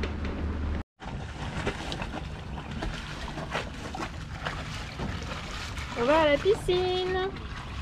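Water laps gently against a boat hull.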